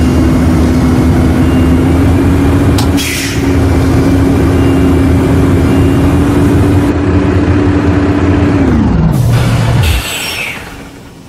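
A bus engine roars loudly as the bus drives, then winds down as it slows.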